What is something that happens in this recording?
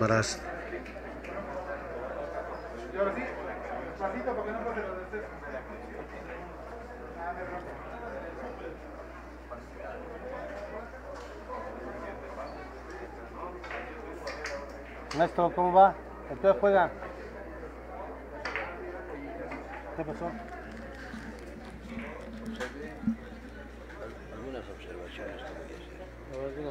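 People murmur and chat in a busy, echoing hall.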